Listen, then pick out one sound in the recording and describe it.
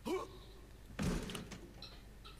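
A body thuds onto a floor.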